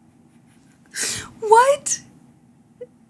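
A young woman laughs, close to a microphone.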